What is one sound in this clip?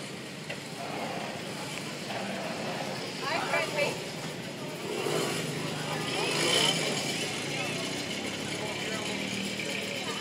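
A quad bike engine runs nearby.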